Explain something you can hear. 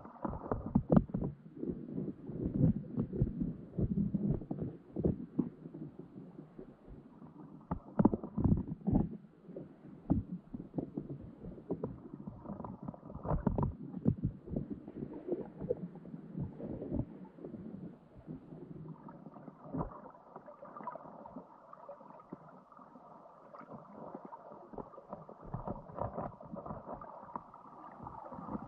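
Crab claws click and scrape underwater.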